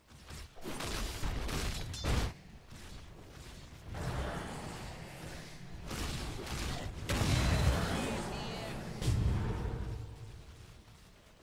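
Fantasy game battle effects crackle and clash.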